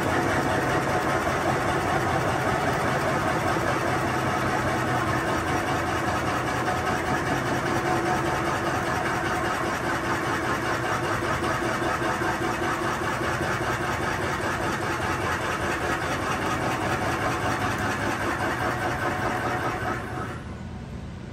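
A tool scrapes and rasps loudly against spinning wood, then stops.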